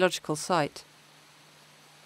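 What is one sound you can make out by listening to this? A shallow stream trickles over stones.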